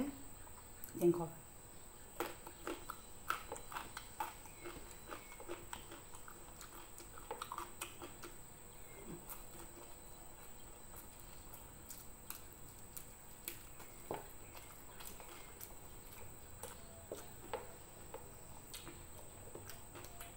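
Food crunches and squelches as a woman eats with her hands.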